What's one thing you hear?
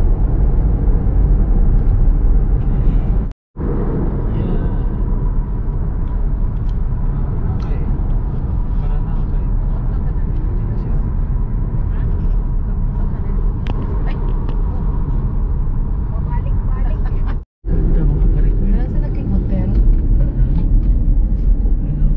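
A car's tyres hum and rumble steadily on a highway, heard from inside the car.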